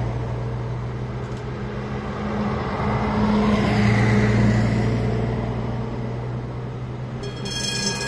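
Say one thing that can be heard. A bus engine drones loudly as the bus passes close by.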